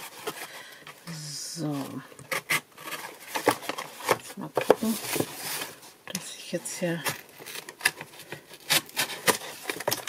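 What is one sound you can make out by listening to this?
A tool clicks and snaps against cardboard.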